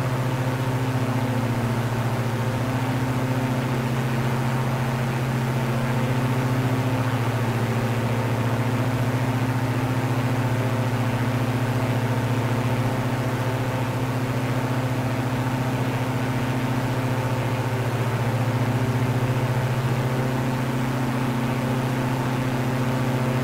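Twin propeller engines drone steadily and loudly, rising and falling slightly in pitch.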